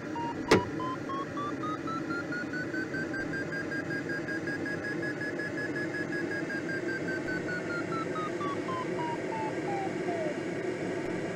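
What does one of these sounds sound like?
A variometer tone rises slowly, holds, then falls away.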